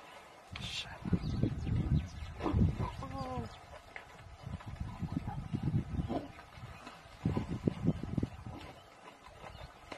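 A lion thrashes and splashes in wet mud.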